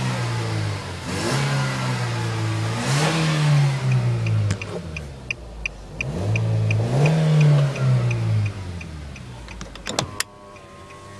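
A car engine revs up and down loudly.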